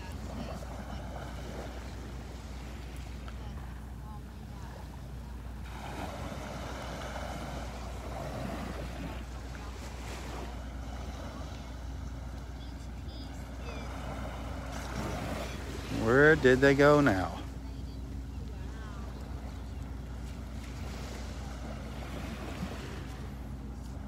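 Small waves lap gently at the shore.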